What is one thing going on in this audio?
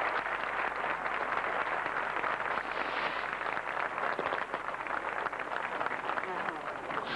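A large crowd cheers loudly in an open stadium.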